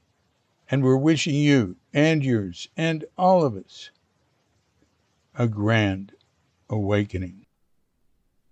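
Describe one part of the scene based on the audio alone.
An elderly man speaks calmly and slowly.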